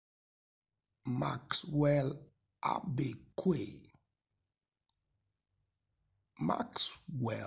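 A man speaks slowly and clearly, in short bursts with pauses.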